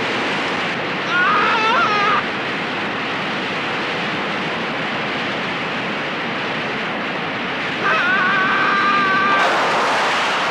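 A man cries out in distress.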